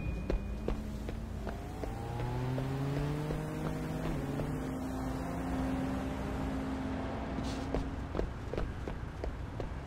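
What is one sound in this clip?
Footsteps tap on hard pavement and stairs.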